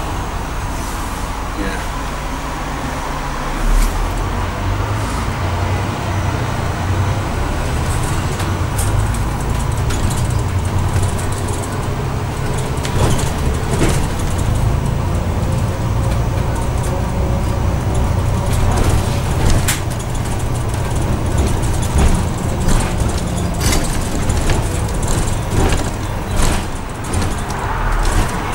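The bus body rattles and clatters over the road.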